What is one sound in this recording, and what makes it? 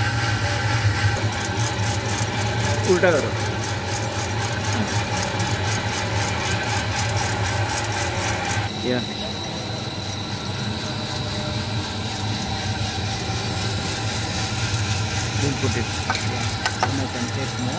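A machine hums steadily.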